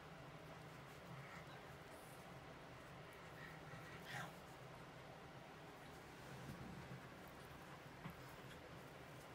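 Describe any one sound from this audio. A crochet hook softly scrapes and taps against yarn.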